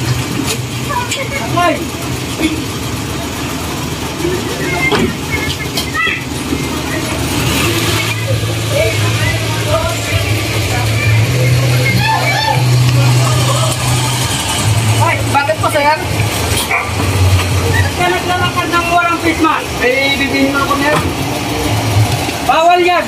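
A small truck engine idles with a low rumble.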